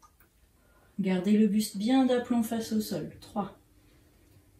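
A woman speaks calmly and clearly, close by.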